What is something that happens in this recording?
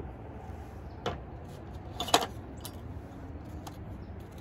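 Paper rustles and taps briefly.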